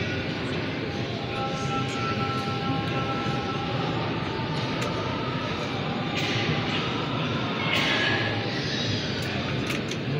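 A large crowd of men murmurs and chants together in a big echoing hall.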